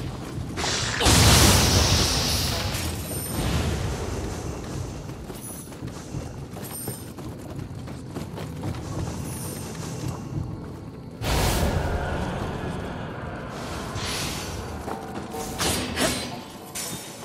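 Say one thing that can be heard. Magic blasts burst with loud, sharp bangs.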